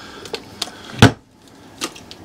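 A cooler lid shuts with a thud.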